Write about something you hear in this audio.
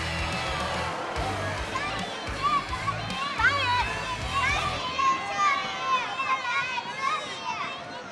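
A young girl calls out loudly.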